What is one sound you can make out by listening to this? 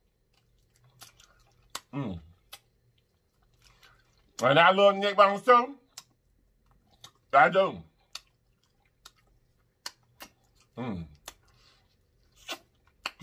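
A man chews and smacks food close to a microphone.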